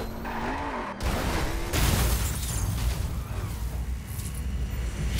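Tyres screech as a racing car skids sideways.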